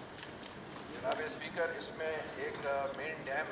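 A man reads out calmly into a microphone.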